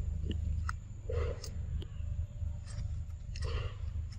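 Leaves rustle as a monkey scrambles through undergrowth.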